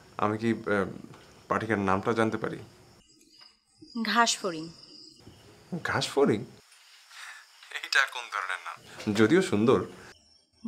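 A young man talks on a phone in a calm, close voice.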